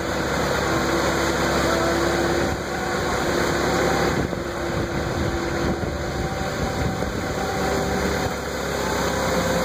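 A forklift engine hums steadily while driving.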